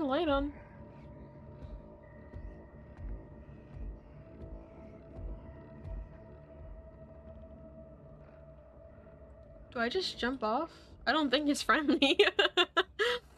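A young woman talks excitedly into a microphone.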